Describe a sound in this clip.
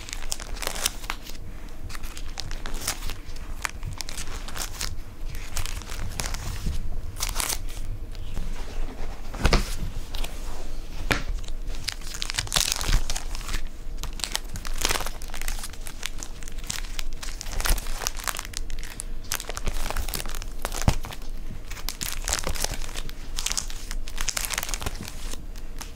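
Plastic sleeves rustle and crackle as album pages are turned by hand.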